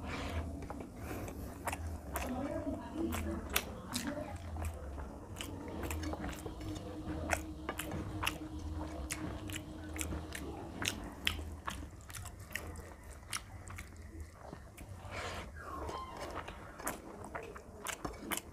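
A man chews and smacks his lips loudly, close up.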